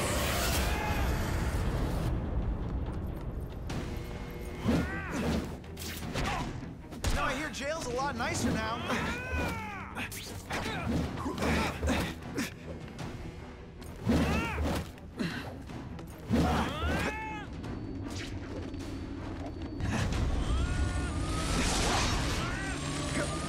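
Electric zaps and blasts crackle and boom during a fight.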